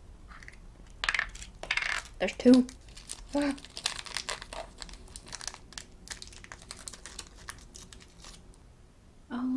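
Small plastic pieces click and rustle in a girl's hands.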